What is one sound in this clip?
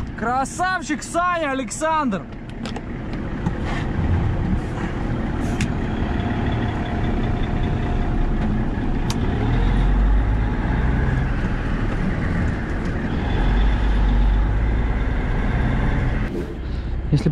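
Tyres hiss and crunch over a snowy road.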